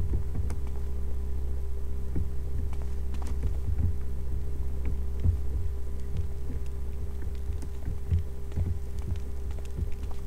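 Footsteps thud steadily on a stone floor.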